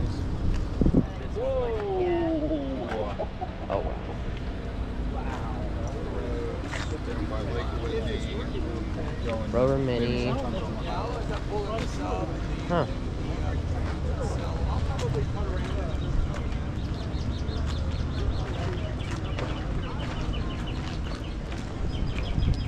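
A crowd of people chatter outdoors in the background.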